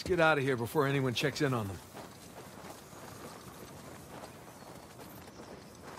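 Footsteps crunch on snow and dry grass.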